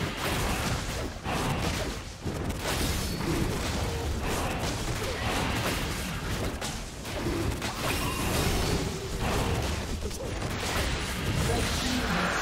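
Spells crackle and clash in a fast fight.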